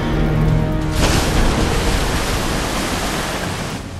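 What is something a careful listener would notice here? Water splashes violently as a heavy object plunges in.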